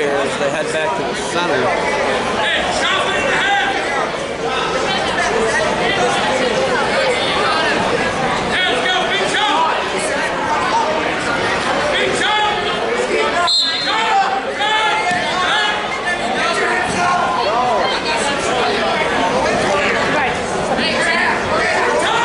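A crowd of spectators talks and shouts in a large echoing gym.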